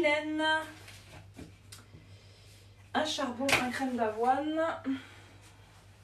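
A woman speaks nearby in a lively, sing-song voice.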